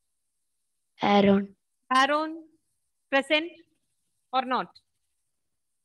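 A teenage girl speaks over an online call.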